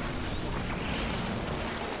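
Thick paint splashes and splatters in bursts.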